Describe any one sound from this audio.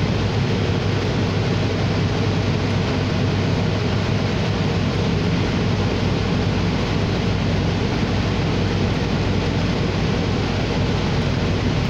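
Tyres roar on the road beneath a moving bus.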